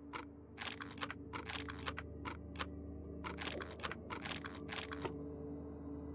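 Menu selections click sharply in quick succession.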